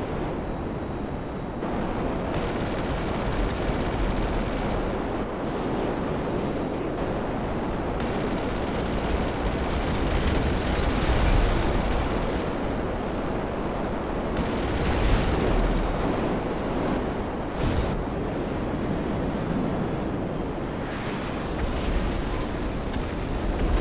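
A jet engine roars steadily as a fighter plane flies low.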